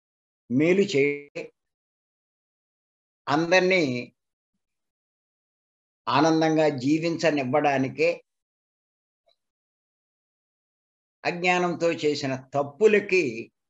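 An elderly man speaks emphatically in short bursts over an online call, with pauses between phrases.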